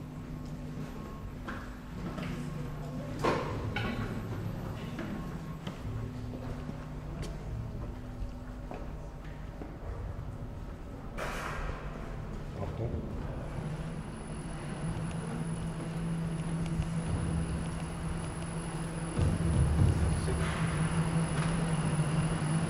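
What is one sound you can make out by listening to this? Footsteps walk across a hard floor in an echoing tiled room.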